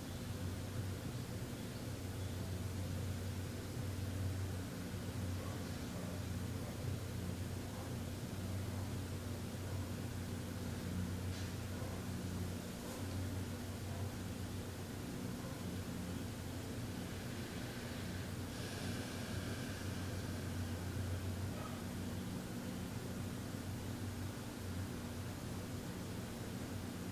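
A man hums a low, steady tone close by.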